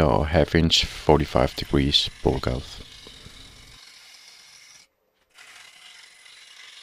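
A wood lathe spins with a steady whir.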